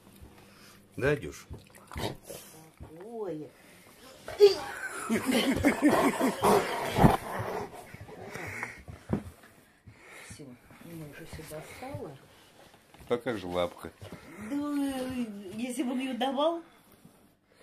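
A dog whines and grumbles in rising and falling moans, close by.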